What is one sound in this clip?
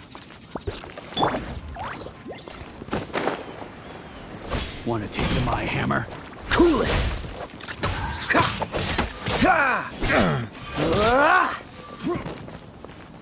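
A sword swishes and strikes in quick bursts.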